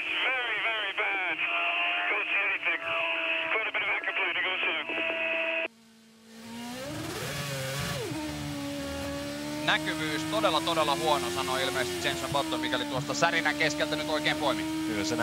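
A racing car engine hums steadily at low revs.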